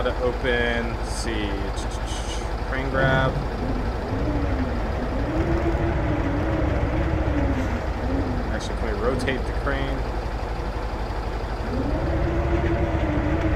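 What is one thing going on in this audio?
A crane engine hums and revs up and down.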